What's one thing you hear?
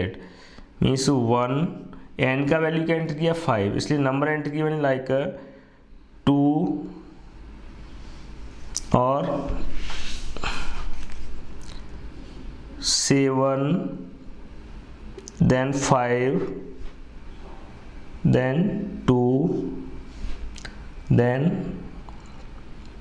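A man explains calmly, close by.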